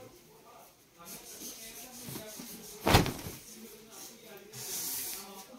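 Cloth rustles and flaps as it is unfolded.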